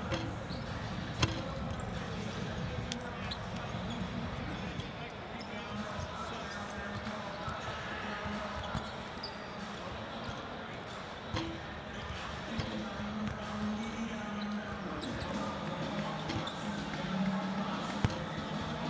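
Basketballs bounce on a hardwood court.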